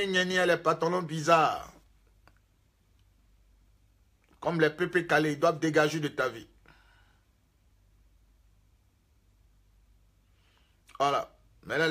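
A man speaks close to the microphone, with emotion, in short bursts with pauses.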